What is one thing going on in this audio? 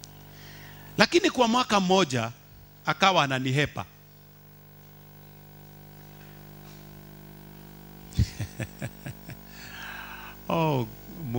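A man preaches loudly and with fervour through a microphone.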